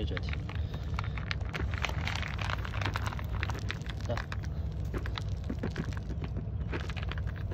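Small dry pellets pour from a plastic tub and rattle onto concrete.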